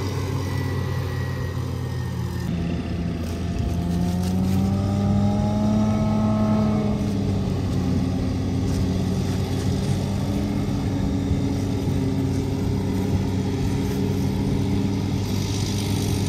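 A tractor engine hums in the distance outdoors.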